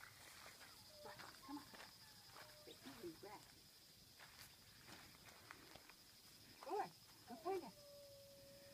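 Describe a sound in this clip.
A woman speaks softly to a dog nearby.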